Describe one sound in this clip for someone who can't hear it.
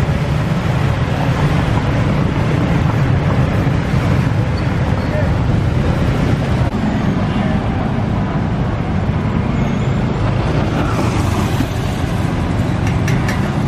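Motorbike engines buzz past.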